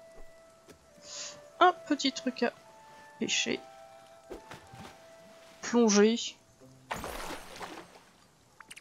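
Water splashes as a small creature jumps in.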